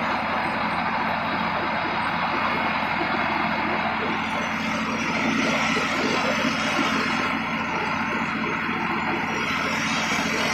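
Tyres roll over bumpy, soft ground.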